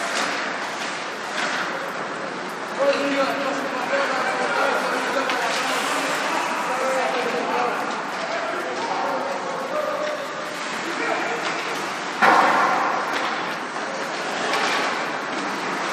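A hockey stick clacks against a puck.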